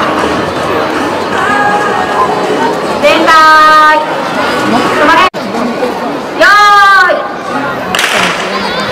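A crowd of children chatters and cheers in the distance outdoors.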